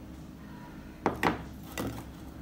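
A bowl is set down on a wooden table.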